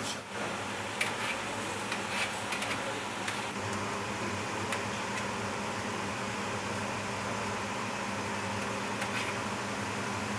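A ladle scrapes and clinks against the side of a metal pot.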